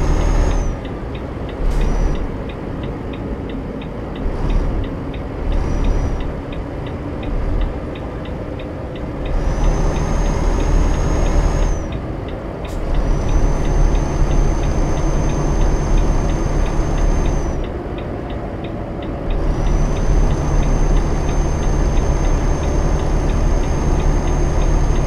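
Tyres roll on a highway.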